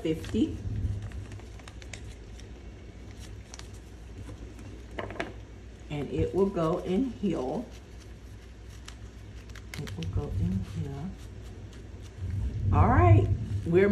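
Paper bills rustle as hands handle them.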